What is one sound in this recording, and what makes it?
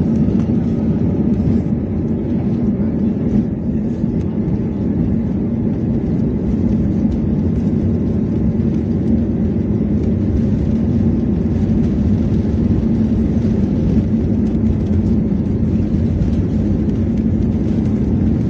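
Jet engines roar steadily inside an aircraft cabin during takeoff.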